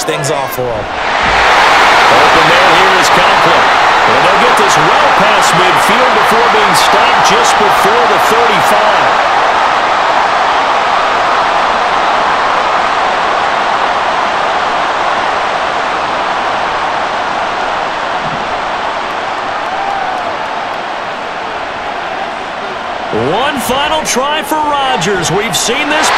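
A large crowd roars loudly and steadily.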